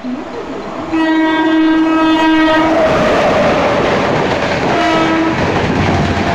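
A train horn blares loudly, then sounds again briefly.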